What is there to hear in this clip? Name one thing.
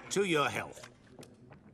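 A man speaks briefly at the start.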